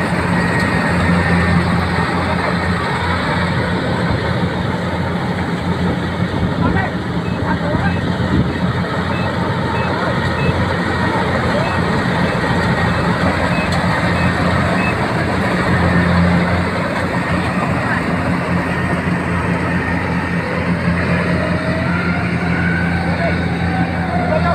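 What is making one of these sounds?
A diesel combine harvester runs close by while cutting rice.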